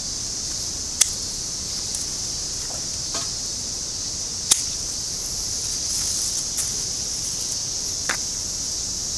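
Pruning shears snip through twigs with sharp clicks.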